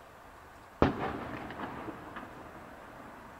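Firework embers crackle and pop after the burst.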